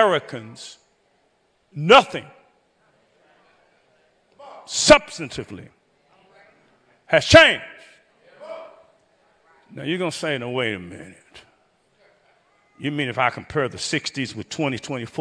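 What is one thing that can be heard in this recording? A man preaches with emphasis into a microphone, pausing between phrases.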